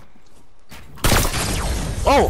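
A rifle shot rings out loudly.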